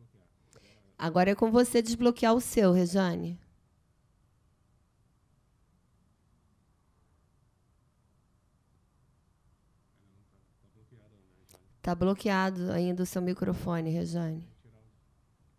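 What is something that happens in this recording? A woman speaks loudly over an online call.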